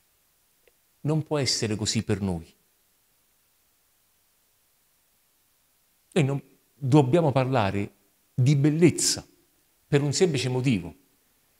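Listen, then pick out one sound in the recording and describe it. A man speaks with animation into a microphone, pausing between phrases.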